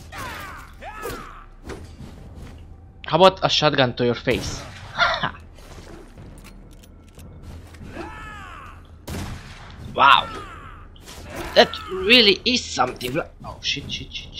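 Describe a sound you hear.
Heavy blows land in a close fight.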